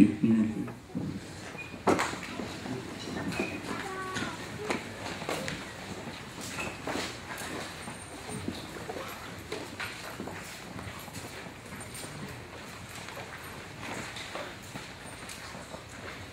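A crowd murmurs and chatters quietly.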